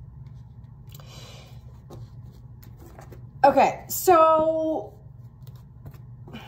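Playing cards rustle and slide in a woman's hands.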